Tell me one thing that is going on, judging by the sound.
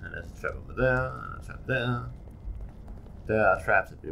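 Footsteps tread slowly on a stone floor.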